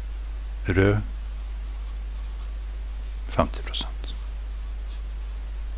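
A pen scratches on paper as someone writes.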